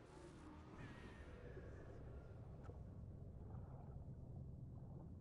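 Muffled underwater bubbling and rumbling goes on steadily.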